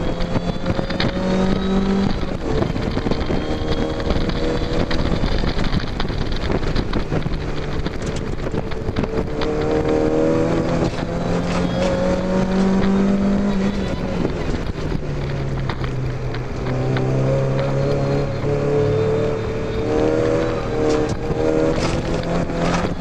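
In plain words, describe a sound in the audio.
A car engine roars loudly, rising and falling in pitch.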